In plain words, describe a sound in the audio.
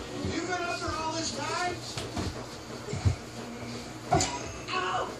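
Feet thump on a wooden floor.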